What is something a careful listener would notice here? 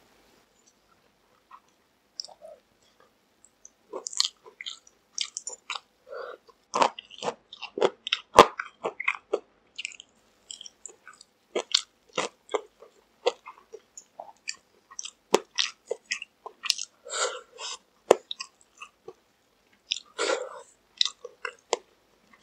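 A young man bites and chews crunchy fried chicken close to a microphone.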